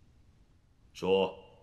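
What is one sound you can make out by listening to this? A man speaks briefly in a deep voice.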